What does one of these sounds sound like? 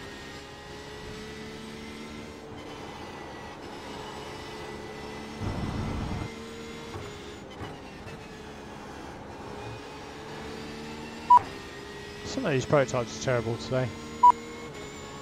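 A racing car engine drones steadily, its pitch rising and dropping as it shifts gears.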